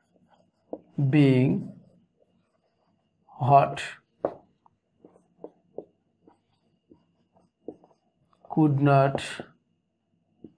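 A man speaks slowly in short phrases, close by.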